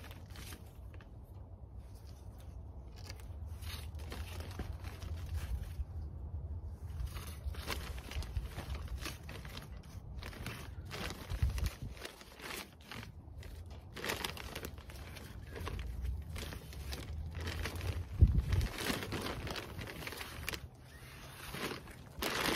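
Soil rustles and pours from a plastic bag.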